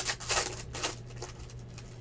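A plastic wrapper crinkles in someone's hands.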